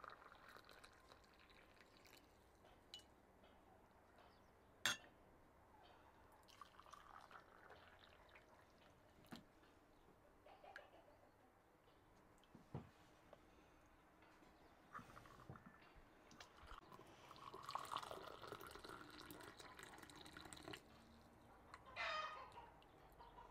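Tea pours and splashes into a glass.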